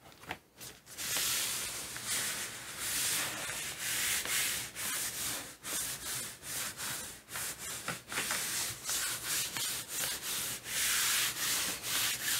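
Hands rub and smooth over a sheet of paper with a steady swishing.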